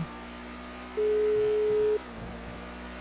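A phone call tone beeps briefly.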